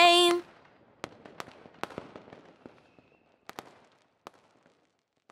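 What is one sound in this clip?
Fireworks bang and crackle outdoors.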